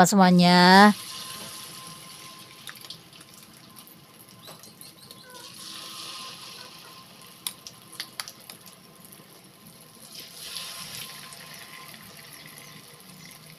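Oil sizzles and bubbles softly in a frying pan.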